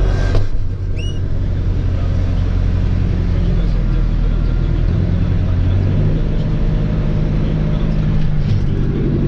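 A forage harvester roars nearby.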